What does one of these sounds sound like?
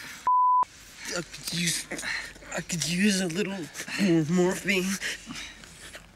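A wounded young man cries out in pain.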